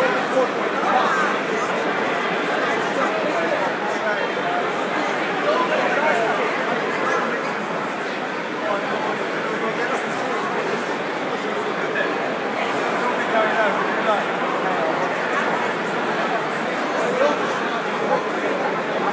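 A crowd of men and women chatters throughout a large echoing hall.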